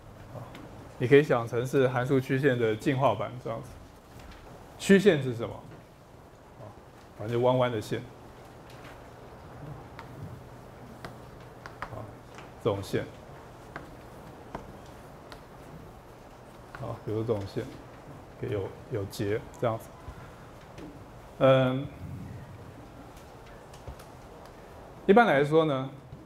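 A man speaks calmly through a microphone in short bursts.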